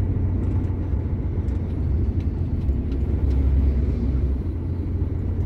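A heavy truck passes close by with a loud rumble.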